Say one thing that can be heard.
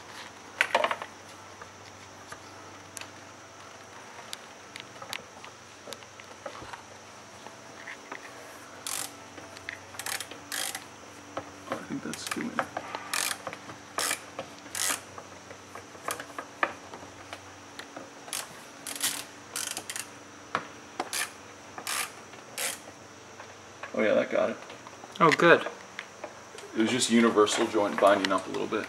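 Small plastic parts click and tap.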